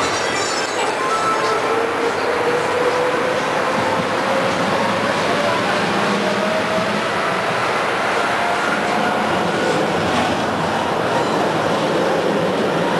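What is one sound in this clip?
A tram's motor whines, rising in pitch as it speeds up.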